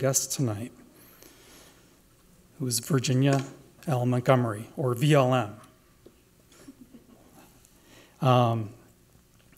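An older man speaks calmly through a microphone, in short phrases with pauses.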